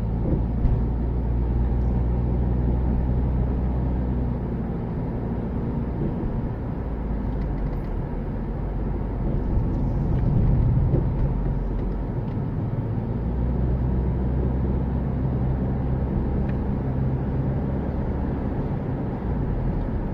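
Tyres roll on smooth road.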